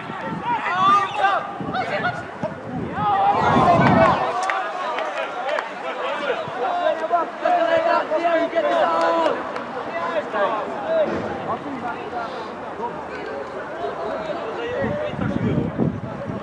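Young players shout and call to each other across an open outdoor pitch.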